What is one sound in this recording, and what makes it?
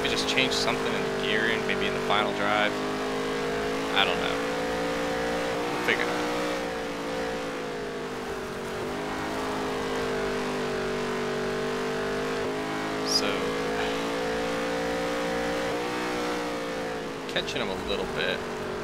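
A race car engine roars steadily, its pitch rising and falling with the throttle.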